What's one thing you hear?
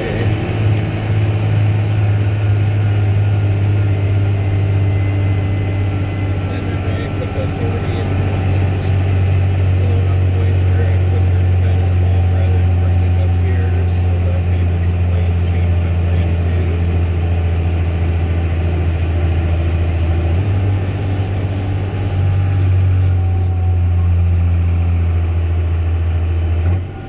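Tyres crunch and rumble on a gravel road.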